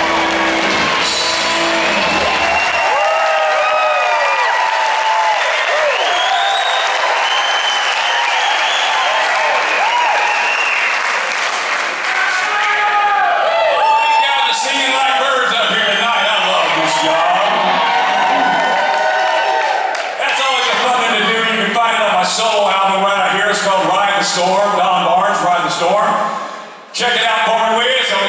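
A rock band plays loudly in a large echoing hall.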